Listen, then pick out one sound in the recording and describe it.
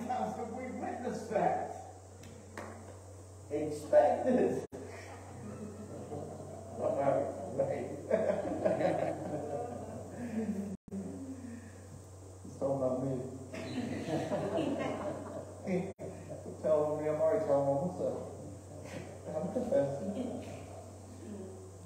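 A middle-aged man preaches with animation through a microphone in a large echoing hall.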